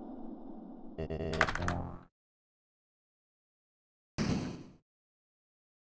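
A video game plays short chiming sound effects.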